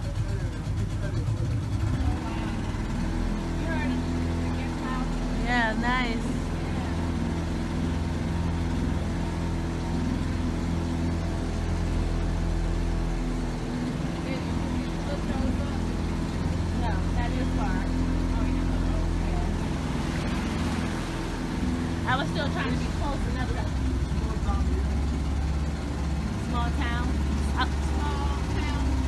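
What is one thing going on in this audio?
A boat engine hums steadily at a low pitch.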